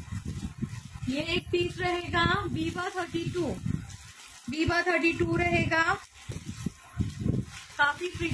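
A plastic wrapper crinkles in hands.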